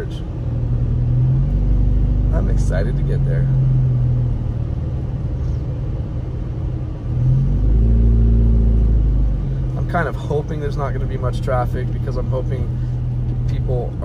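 A car engine hums steadily from inside the car, rising and falling in pitch.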